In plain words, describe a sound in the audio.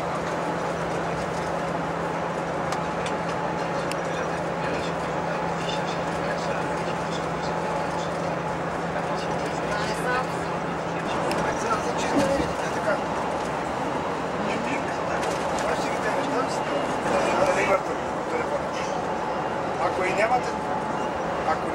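A vehicle's engine hums steadily while driving on a highway.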